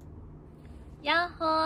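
A young woman speaks brightly over an online call.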